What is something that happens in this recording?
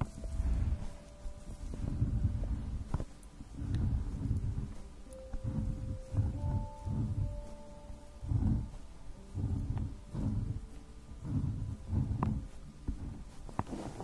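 A pen scratches and taps on paper close up.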